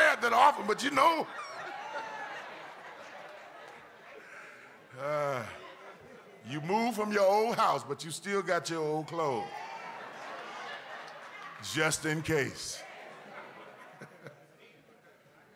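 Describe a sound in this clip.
A crowd laughs and murmurs.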